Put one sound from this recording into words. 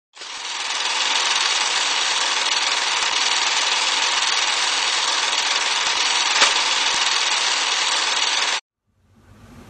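A film projector whirs and clatters steadily.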